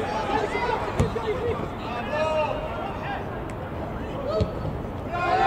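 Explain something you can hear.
A football is struck with a hard thump.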